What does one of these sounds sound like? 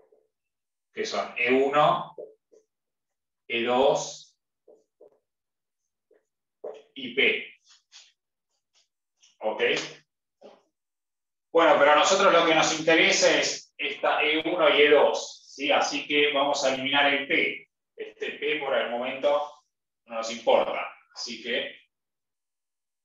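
A man speaks calmly nearby, explaining in short bursts.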